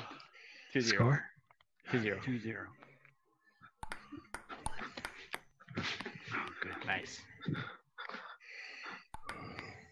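A ping-pong ball clicks against a paddle and table.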